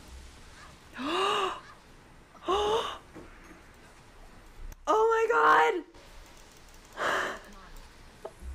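A young woman speaks and exclaims into a microphone.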